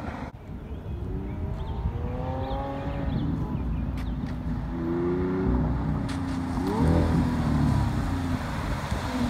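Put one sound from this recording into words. A sports car engine roars and revs as the car approaches.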